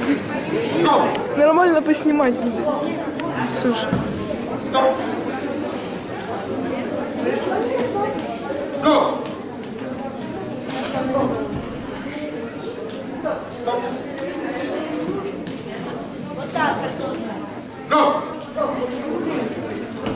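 Feet thump and shuffle on a mat as two boys wrestle.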